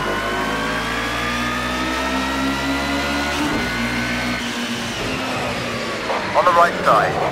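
A race car engine roars steadily at high revs, its pitch slowly shifting.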